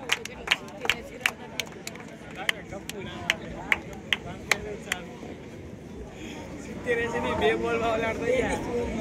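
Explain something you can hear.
A crowd of men and boys chatters outdoors.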